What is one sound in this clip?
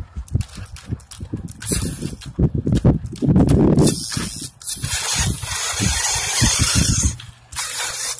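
Plastic tyres scrape and crunch on dry dirt.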